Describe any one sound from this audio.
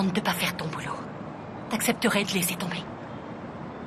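A woman speaks tensely up close.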